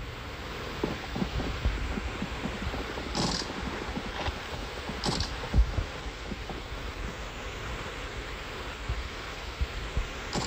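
Footsteps thud quickly on soft ground.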